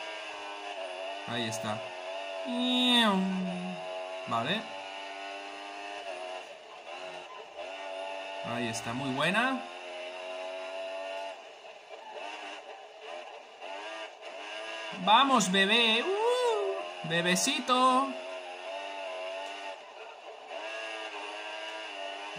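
A racing car engine whines at high speed and its pitch rises and falls as it shifts gears.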